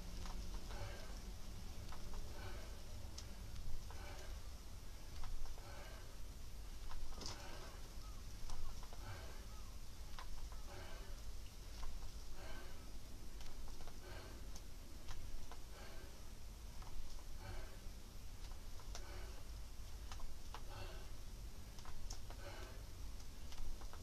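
A man breathes out hard in rhythm with each lift.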